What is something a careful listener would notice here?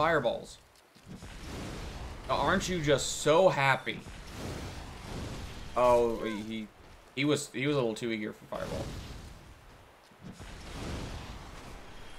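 Fireballs whoosh and burst with a roar.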